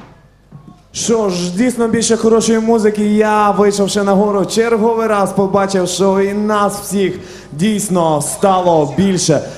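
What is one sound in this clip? A man sings loudly through a microphone.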